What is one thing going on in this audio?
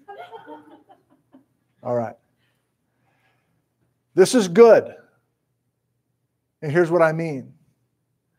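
A middle-aged man speaks with animation through a clip-on microphone, in short bursts with pauses.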